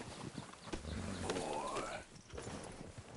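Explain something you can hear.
A horse whinnies.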